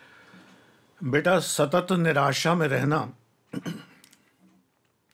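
An elderly man speaks with emphasis close to a microphone.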